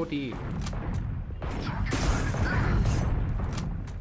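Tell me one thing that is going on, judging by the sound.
A gunshot sounds in the game.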